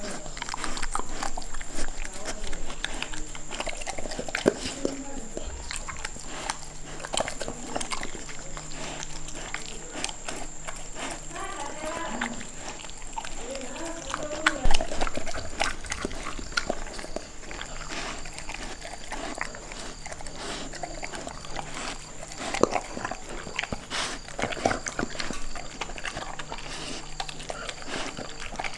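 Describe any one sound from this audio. A dog eats noisily from a metal bowl, chewing and smacking close by.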